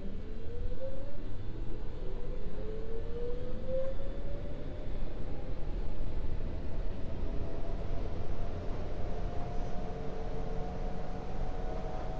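A train's motor whines, rising slowly in pitch.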